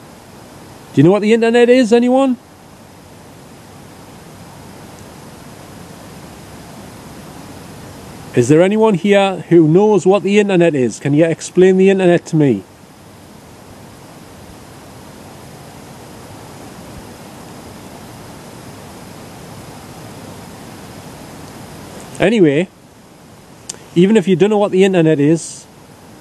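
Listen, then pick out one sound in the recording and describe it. A man speaks up close in short, animated bursts.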